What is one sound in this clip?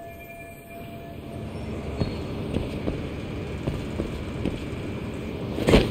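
Footsteps clank on a metal surface.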